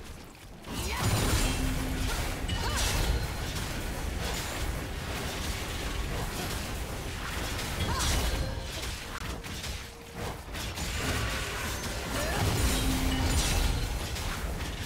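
Weapons clash and strike in rapid blows.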